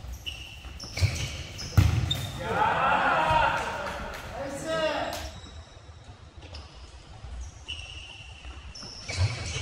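A ball thuds when kicked.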